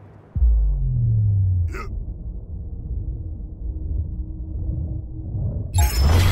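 A deep rumbling whoosh roars.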